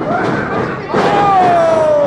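A wrestler's body slams down hard onto a ring mat.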